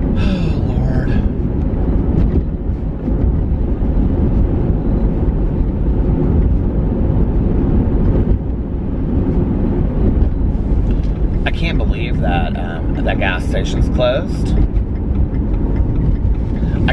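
A car engine rumbles steadily with road noise.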